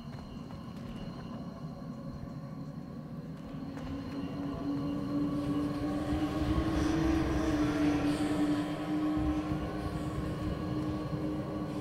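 Footsteps pace across a stone floor.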